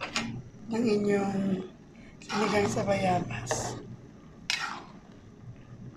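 A ladle stirs and scrapes in a metal pan of soup.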